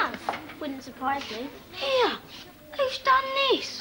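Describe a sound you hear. A young boy speaks nearby.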